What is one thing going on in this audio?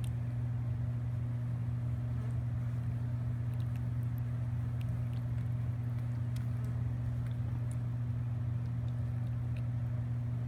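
A piglet laps and slurps milk from a bowl.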